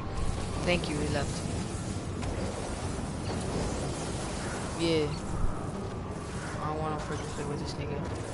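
Footsteps run over grass.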